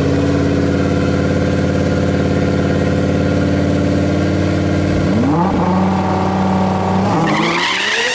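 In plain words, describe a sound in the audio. Car engines idle loudly with a deep rumble.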